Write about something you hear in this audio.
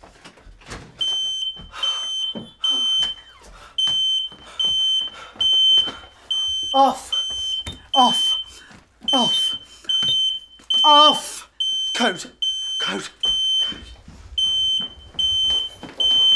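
An alarm keypad beeps in a fast, steady pattern.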